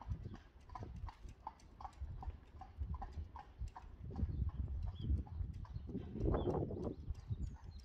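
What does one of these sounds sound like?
A horse's hooves clop at a trot on pavement.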